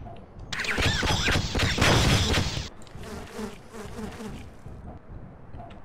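A loud explosion roars and crackles, then dies away.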